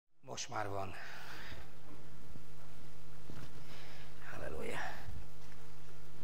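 A middle-aged man speaks calmly through a microphone.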